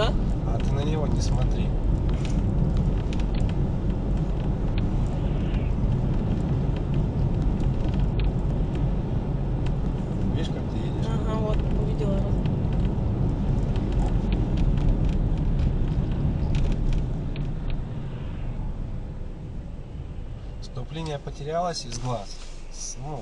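Road noise rumbles steadily inside a moving car and eases as the car slows.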